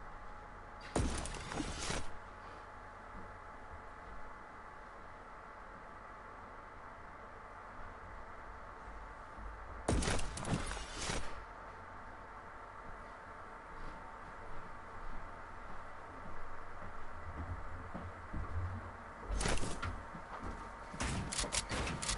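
A loud whoosh bursts out several times.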